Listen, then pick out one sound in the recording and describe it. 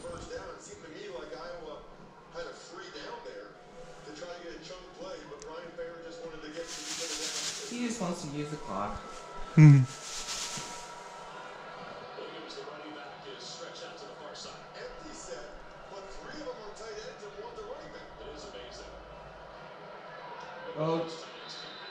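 A sports broadcast plays from a television in the room, with a man commentating.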